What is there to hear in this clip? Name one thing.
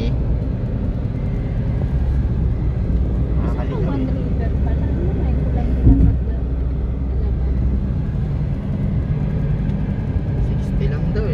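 A car engine hums steadily as tyres roll over the road inside a moving car.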